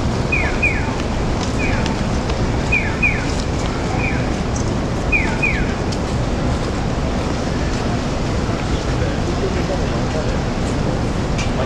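A low rumble of city traffic fills the air outdoors.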